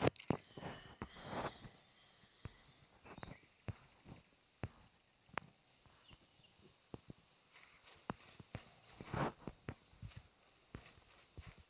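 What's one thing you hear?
Footsteps rustle through dry grass.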